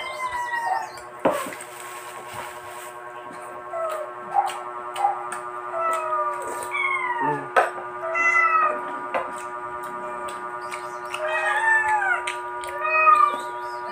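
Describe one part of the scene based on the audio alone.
A young man bites into crispy fried chicken with a loud crunch.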